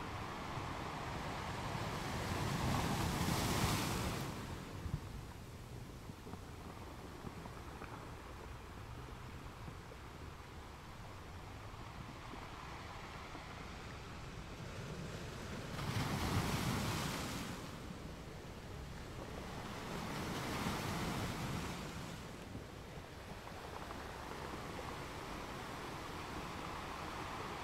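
Wind gusts outdoors, rising and falling in strong bursts.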